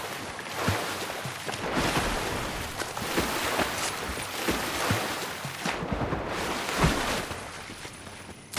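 Water splashes and sloshes as a swimmer paddles through it.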